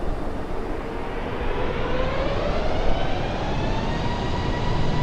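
A jet engine's whine rises in pitch.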